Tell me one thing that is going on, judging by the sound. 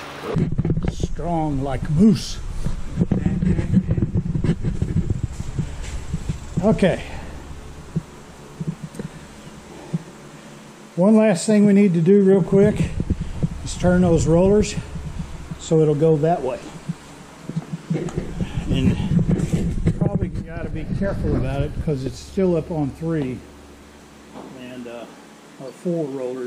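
A middle-aged man talks calmly close to a microphone.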